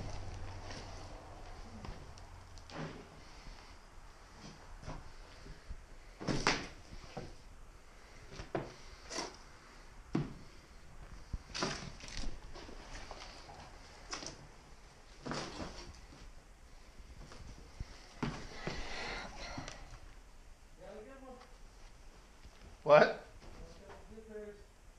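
Fabric and litter rustle as they are picked up and dropped.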